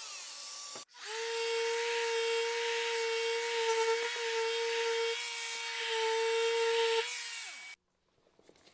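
An electric sander hums with a steady high whine.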